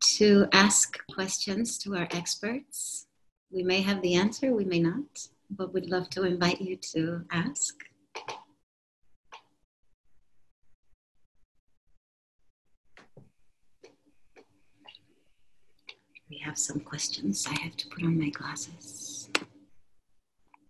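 A woman speaks warmly through an online call.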